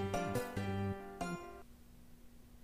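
A smartwatch plays a short bright chime.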